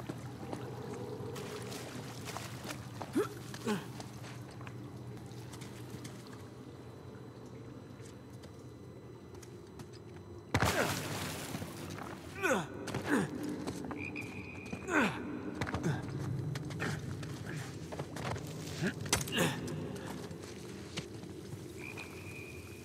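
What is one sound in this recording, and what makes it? Footsteps scrape and shuffle over rock and brush.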